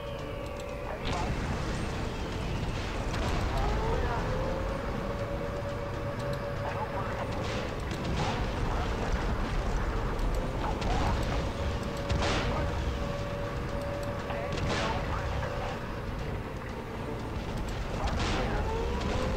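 Tank guns fire in sharp, booming shots.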